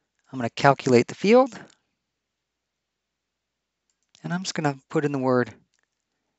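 A man speaks calmly and close to a microphone, in two short phrases.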